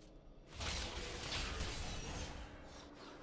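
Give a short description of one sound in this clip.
Magic spells crackle and burst in a loud rush.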